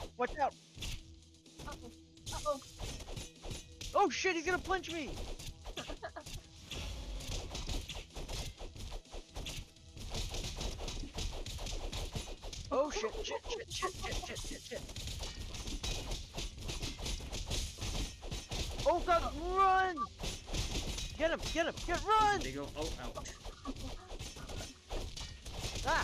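Cartoon weapons clang and thud in quick, repeated hits.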